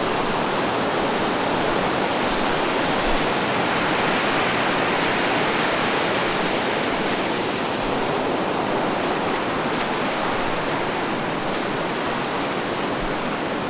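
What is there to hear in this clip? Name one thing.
Footsteps crunch slowly over loose pebbles.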